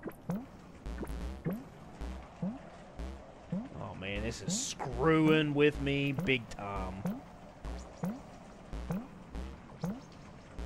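Soft bubbly blips pop at a steady, repeating pace.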